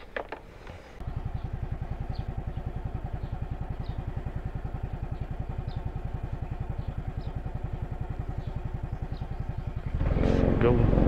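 A scooter engine idles with a steady, even putter.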